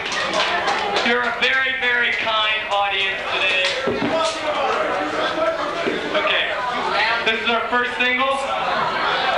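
A man speaks with animation through a loudspeaker in an echoing room.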